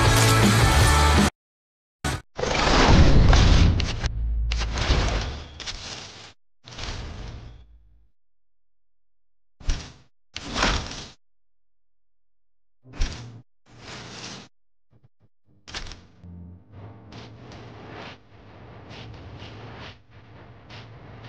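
Short electronic whooshes and chimes play as game menus change.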